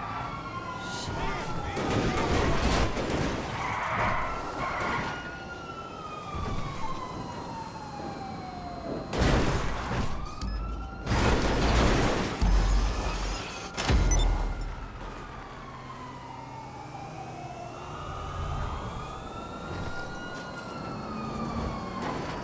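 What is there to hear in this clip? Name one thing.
A sports car engine roars and revs.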